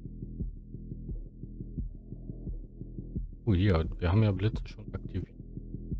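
Soft electronic game music plays with a steady, low beat.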